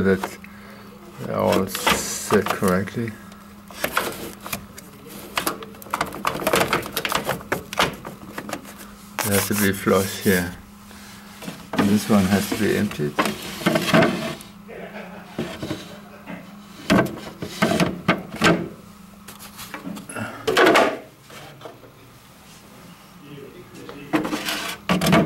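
Plastic parts click and knock as they are handled.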